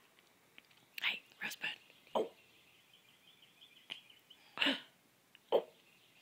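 A toddler smacks their lips.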